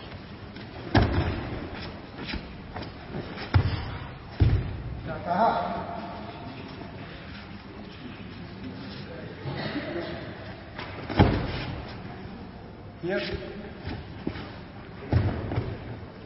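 Bodies thud heavily onto a mat.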